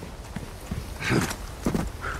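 A body thumps heavily while climbing over a wooden fence.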